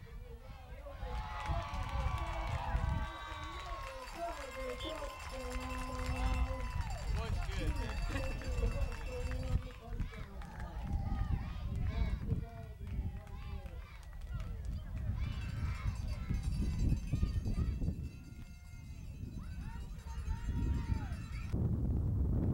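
A crowd cheers and shouts excitedly outdoors.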